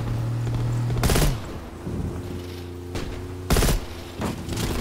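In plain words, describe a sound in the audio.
A rifle fires two loud, sharp shots.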